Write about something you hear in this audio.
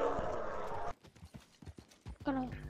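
Horse hooves clop slowly on dirt.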